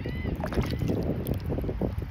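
Shallow water laps and swirls gently close by.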